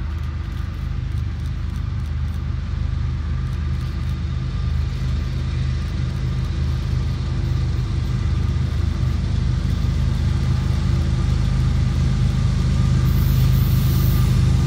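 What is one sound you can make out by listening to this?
Diesel locomotive engines rumble as a freight train approaches, growing steadily louder.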